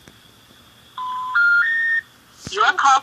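A phone keypad beeps with short tones as numbers are pressed.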